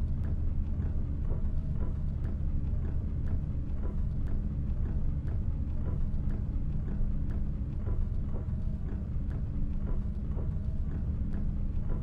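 A windscreen wiper swishes back and forth.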